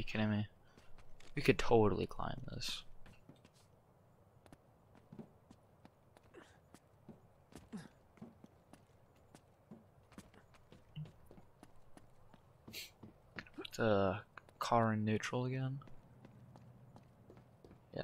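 Footsteps run and scuff on hard ground.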